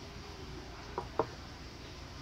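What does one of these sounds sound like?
A small wooden piece knocks lightly on a wooden table.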